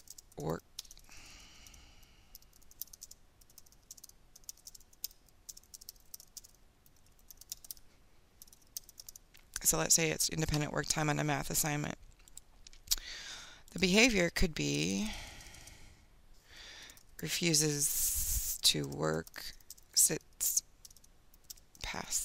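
Keys click on a keyboard as someone types.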